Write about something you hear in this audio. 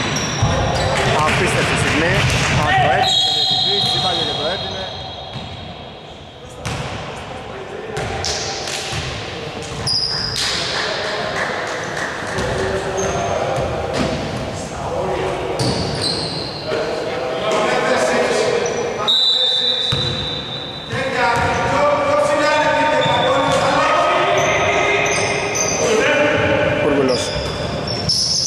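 Sneakers squeak sharply on a hard court in a large echoing hall.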